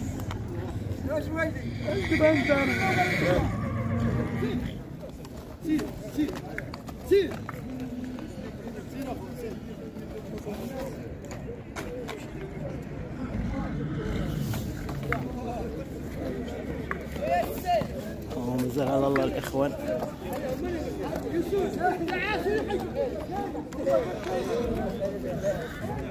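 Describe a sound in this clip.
Several men talk outdoors nearby.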